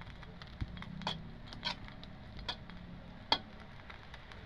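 A spatula scrapes against a pan.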